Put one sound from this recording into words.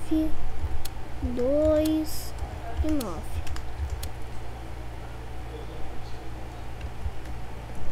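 Keypad buttons click as a code is entered.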